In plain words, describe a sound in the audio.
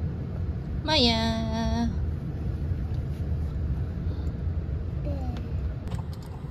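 A young girl speaks nearby in a high voice.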